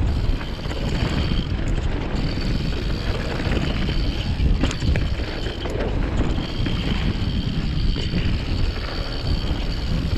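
Bicycle tyres crunch over a rough dirt trail.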